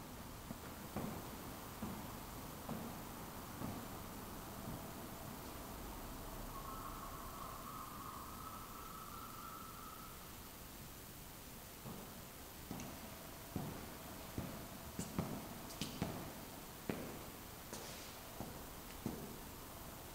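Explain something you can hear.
Footsteps tap on a hard floor in a quiet, echoing room.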